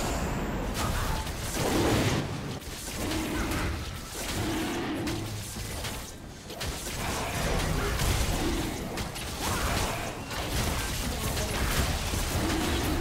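Magic spells crackle and burst during a game battle.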